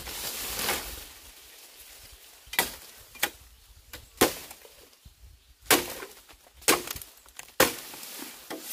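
A machete chops into bamboo with sharp blows.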